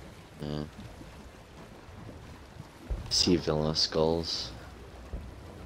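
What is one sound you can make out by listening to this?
Waves lap gently against a wooden ship's hull.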